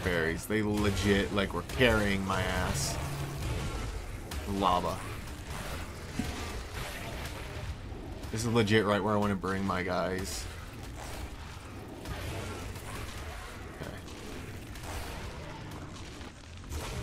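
Heavy bites thud and crunch repeatedly.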